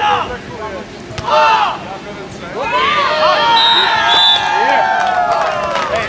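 A volleyball is struck with a hand with dull smacks.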